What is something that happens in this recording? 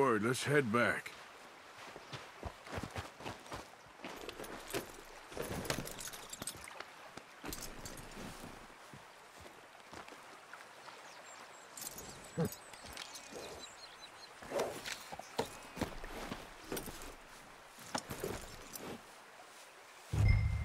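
A horse's hooves clop on loose stones.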